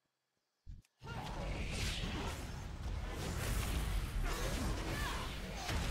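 Game combat sounds clash and crackle loudly with spell effects.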